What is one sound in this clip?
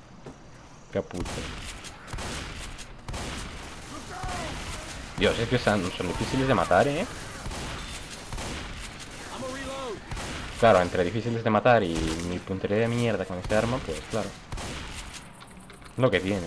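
A shotgun fires repeated loud blasts.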